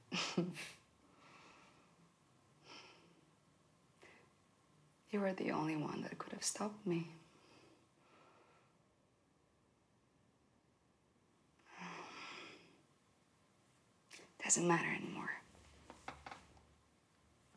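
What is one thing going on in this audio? A young woman speaks softly and playfully nearby.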